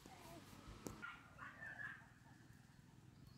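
A baby babbles softly nearby.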